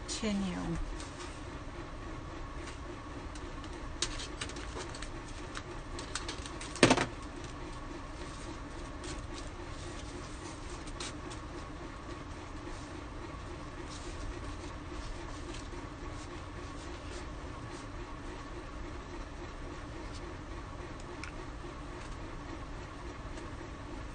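Stiff paper rustles and crinkles under hands.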